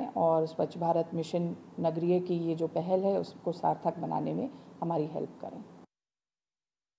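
A woman speaks calmly and clearly into a close microphone.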